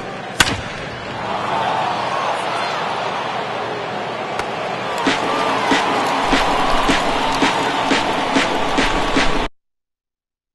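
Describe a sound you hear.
A stadium crowd cheers and roars.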